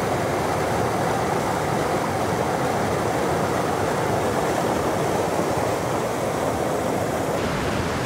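Whitewater rapids roar loudly and steadily close by.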